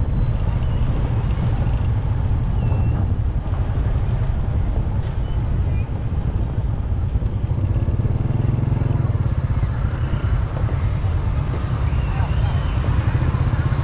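Motor scooter engines hum nearby in traffic.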